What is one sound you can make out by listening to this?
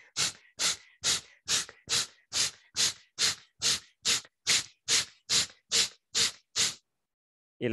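A man breathes out sharply and forcefully in a quick, even rhythm.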